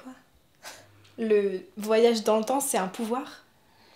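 A young woman laughs softly, close by.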